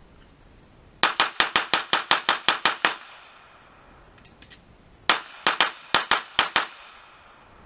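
A handgun fires rapid bursts of shots outdoors, each shot echoing briefly.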